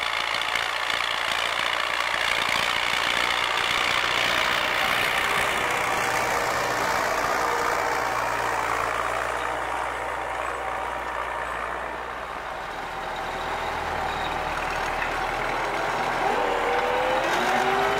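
A tractor engine runs with a loud, steady rumble close by.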